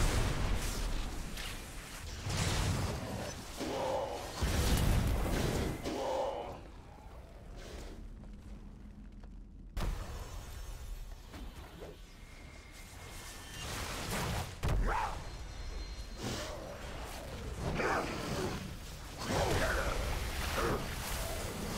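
Weapons clash in a fight.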